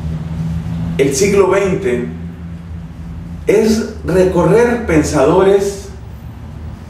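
A man speaks with animation into a close microphone.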